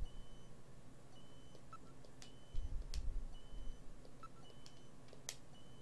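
Short electronic beeps from a video game menu sound repeatedly.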